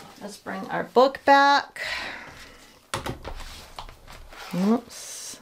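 Paper pages rustle and flap as a book is opened and turned.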